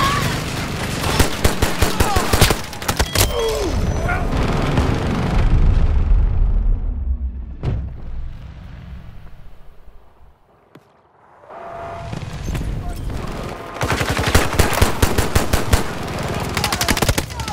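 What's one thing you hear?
Gunfire rattles in rapid bursts.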